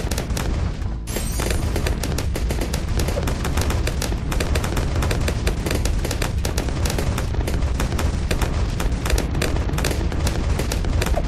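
Rapid explosions boom and pop in quick succession.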